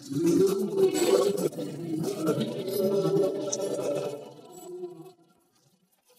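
A large creature growls deeply.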